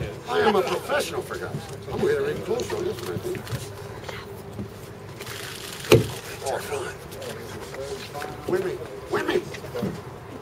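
Men in a crowd talk outdoors.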